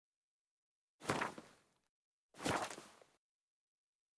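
Short menu chimes sound now and then.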